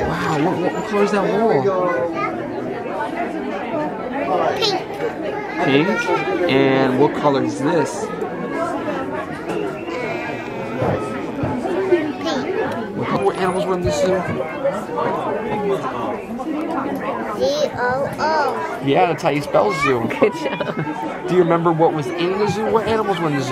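A young girl talks and asks questions in a high voice, close by.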